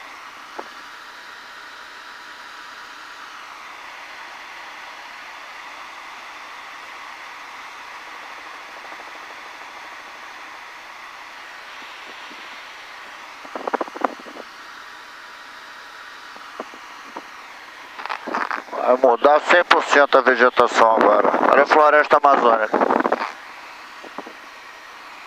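A helicopter engine and rotor drone steadily throughout.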